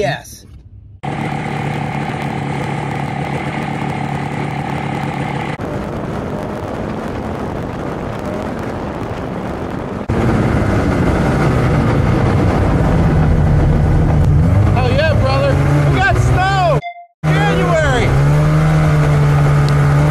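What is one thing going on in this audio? A snowmobile engine hums steadily.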